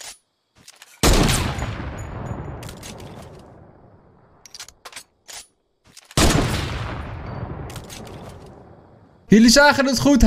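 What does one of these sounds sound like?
A sniper rifle fires a loud shot that echoes away slowly.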